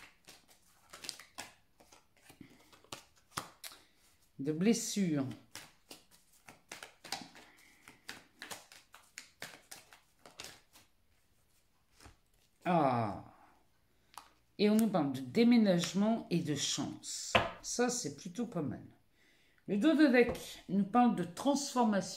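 Cards are shuffled and flicked with soft clicks and riffles.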